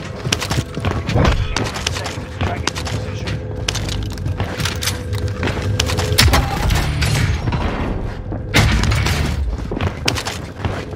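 Quick footsteps thud on a hard floor.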